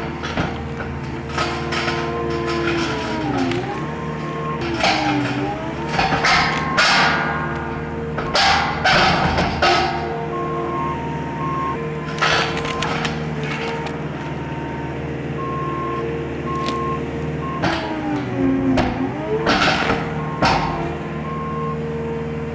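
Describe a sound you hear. A diesel engine of a tracked loader rumbles steadily and revs up and down.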